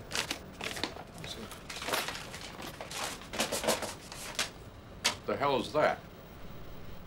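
Cardboard and paper rustle as a package is opened.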